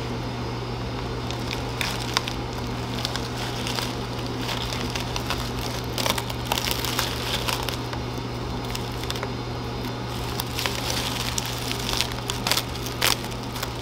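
Plastic sheeting crinkles as hands fold and press it with masking tape.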